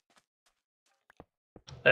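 A pickaxe chips at stone with short knocks.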